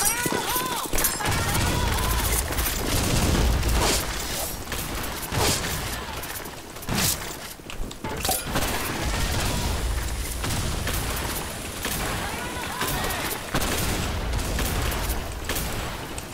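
Gunshots crack loudly now and then.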